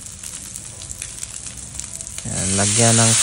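Spices crackle softly in hot oil in a pan.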